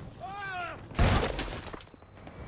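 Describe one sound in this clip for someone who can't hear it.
A loud explosion booms and debris scatters.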